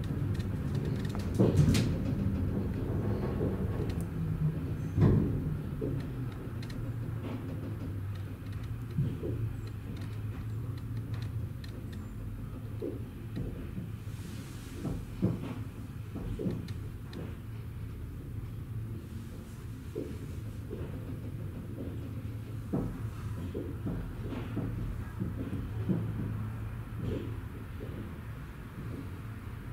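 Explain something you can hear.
The wheels and car body of a suspension railway clunk and rattle as it slowly rolls into a station.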